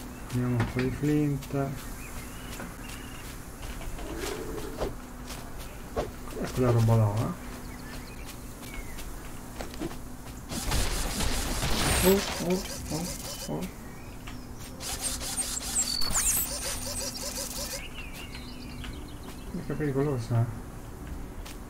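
A man talks calmly and casually close to a microphone.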